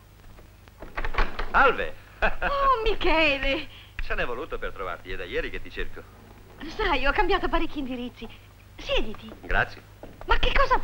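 A man speaks warmly.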